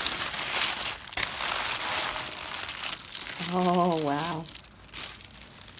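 Tissue paper crinkles and rustles.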